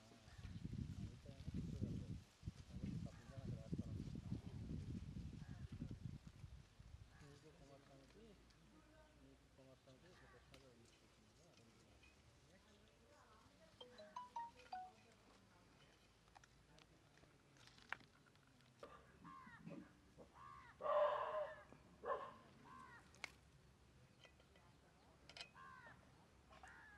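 Plant stems snap softly as chillies are picked by hand.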